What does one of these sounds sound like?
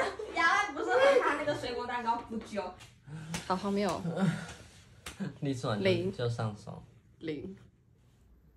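A young man talks and laughs with animation nearby.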